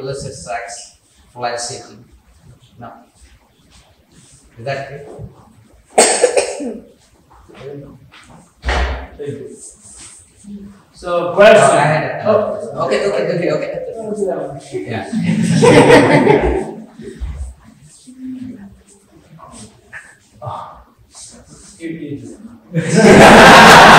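An elderly man speaks with animation in a large echoing hall.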